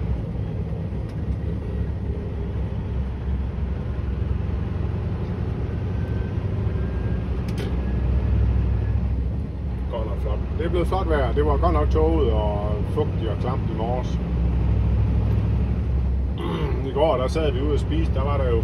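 A vehicle engine hums steadily with tyres rolling on the road.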